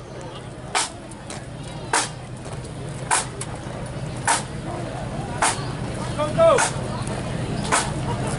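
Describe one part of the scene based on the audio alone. Footsteps of men march in step on a road.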